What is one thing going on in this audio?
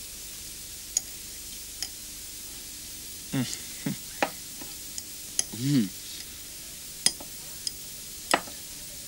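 Spoons clink against plates.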